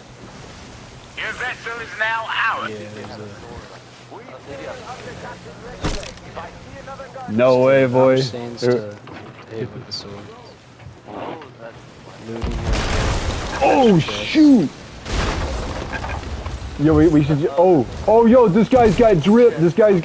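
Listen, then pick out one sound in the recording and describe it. Waves surge and crash against a wooden ship.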